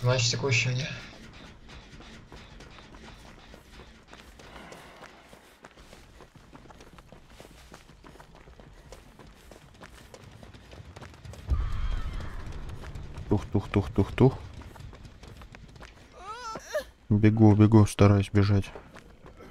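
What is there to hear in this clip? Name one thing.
Footsteps run quickly through tall grass.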